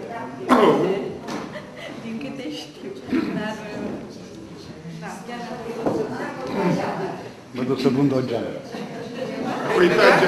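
A woman speaks with animation to a room.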